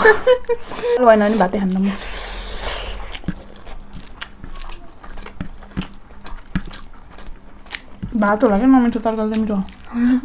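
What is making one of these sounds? Fingers squish and mix rice on a plate.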